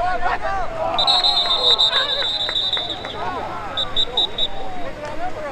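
A referee's whistle blows a few sharp blasts.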